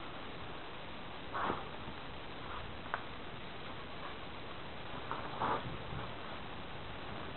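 A small flame crackles as it burns a strip of fabric.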